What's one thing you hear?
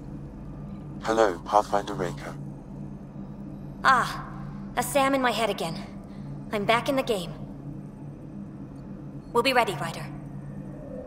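A creature-like voice speaks in a slow, raspy way.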